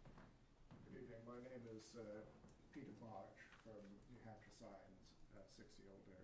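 A man speaks from the floor, heard faintly.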